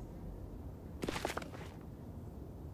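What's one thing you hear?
A sheet of paper rustles as it is picked up.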